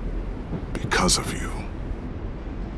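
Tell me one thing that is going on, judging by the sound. A man speaks softly and warmly at close range.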